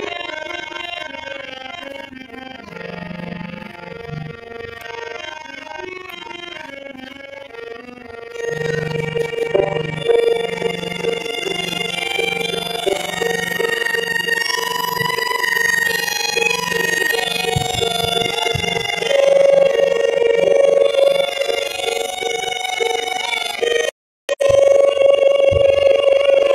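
A group of women sing a devotional chant together.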